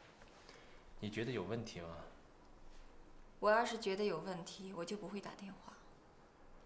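A young woman answers calmly nearby.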